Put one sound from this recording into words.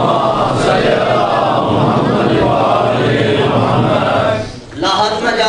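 A man recites loudly and passionately through a microphone in an echoing hall.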